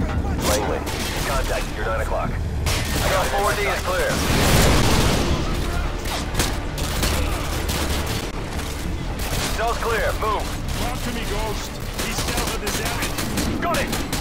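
Rapid gunfire rattles and echoes.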